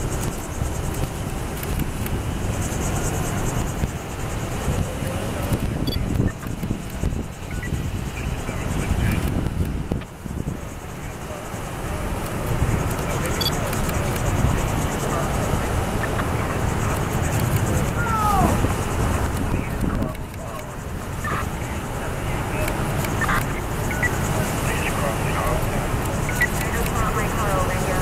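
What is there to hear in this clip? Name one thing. Tyres roll on the road as vehicles drive past.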